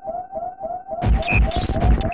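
Blasters fire and explosions crackle loudly.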